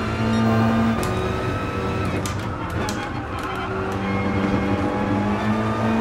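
A race car engine drops in pitch as the car slows down.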